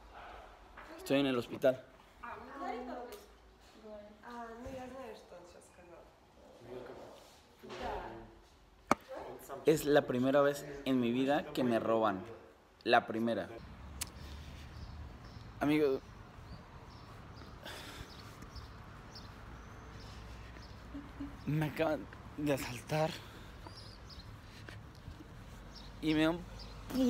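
A young man talks close by in short bursts, calmly.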